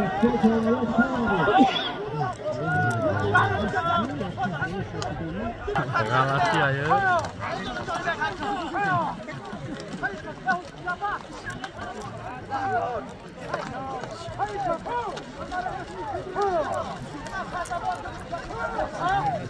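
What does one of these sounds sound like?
A crowd of men shouts outdoors.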